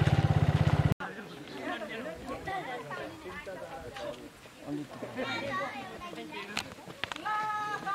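A crowd of young people chatters outdoors.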